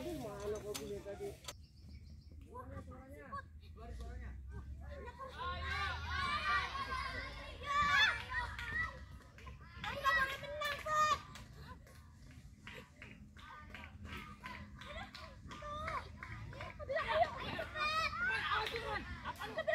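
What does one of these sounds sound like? Children shout and chatter excitedly nearby outdoors.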